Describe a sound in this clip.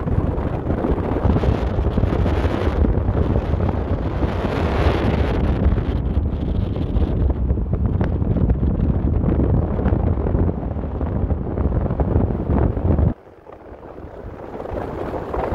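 Tyres hum steadily on a paved road.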